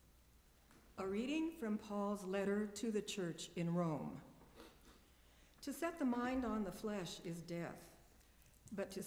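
An elderly woman reads out calmly through a microphone.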